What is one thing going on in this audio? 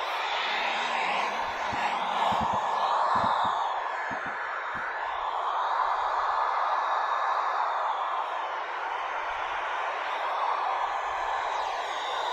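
Static hisses steadily from a handheld radio.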